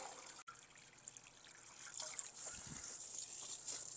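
Water sprays from a garden hose and splashes into a container.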